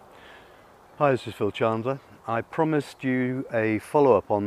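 An older man speaks calmly and close up.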